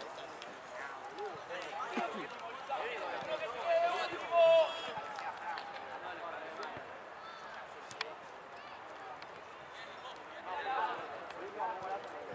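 Men shout and call out across a pitch.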